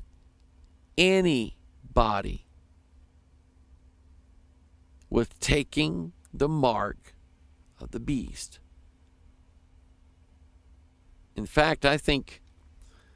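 A middle-aged man speaks into a close microphone in short bursts, with pauses.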